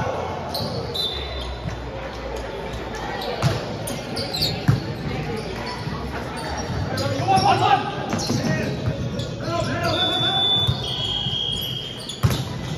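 Sneakers squeak on the hard floor.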